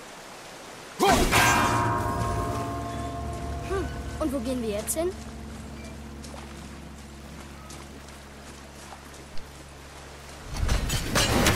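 A thrown axe strikes a metal bell, which rings out and slowly fades.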